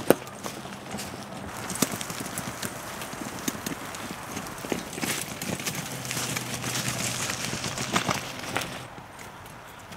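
A cart's wheels rumble and rattle over dry leaves.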